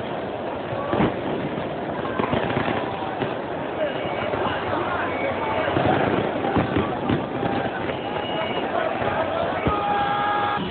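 Fireworks bang and crackle nearby.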